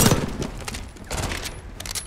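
A rifle magazine clicks into place.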